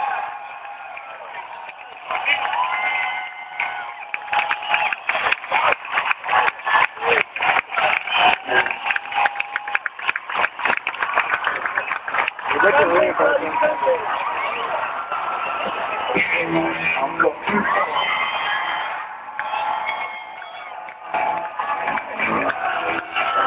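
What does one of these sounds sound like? A man sings through loud speakers, heard from far back in a large crowd.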